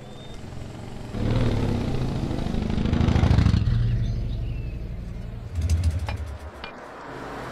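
A motorcycle engine rumbles past on a road.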